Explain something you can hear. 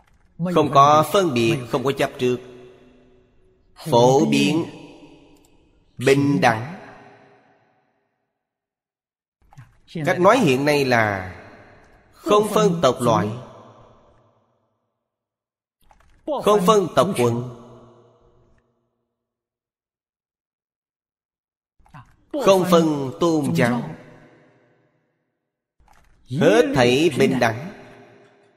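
An elderly man speaks calmly and slowly into a close microphone, with long pauses between phrases.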